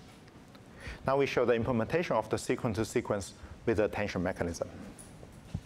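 A young man lectures calmly into a microphone.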